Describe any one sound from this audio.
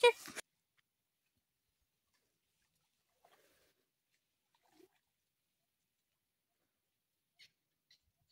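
Water splashes gently as a man wades through a pond.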